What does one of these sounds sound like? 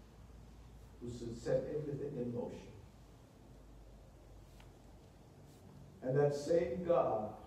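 A man speaks steadily with pauses, heard through a microphone.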